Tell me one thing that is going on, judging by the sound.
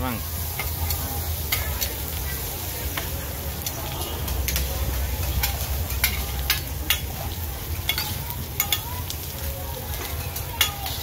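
Metal spatulas clink and scrape against a hot griddle.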